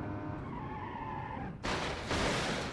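A car engine hums at speed.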